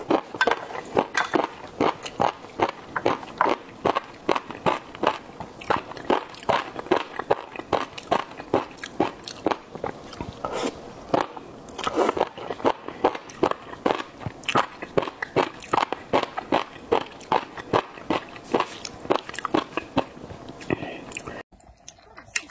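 A young woman chews food loudly and wetly, very close to a microphone.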